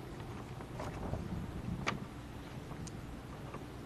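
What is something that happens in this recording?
A paper leaflet rustles as it is held up.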